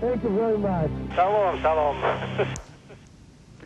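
A man speaks through a crackly headset radio link.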